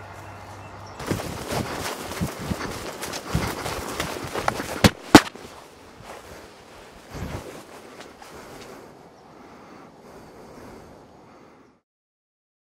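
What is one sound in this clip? Heavy cloth rustles and brushes right up close.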